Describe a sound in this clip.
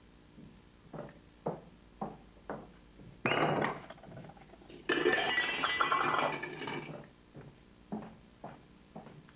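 Small objects clink and knock against a hard surface.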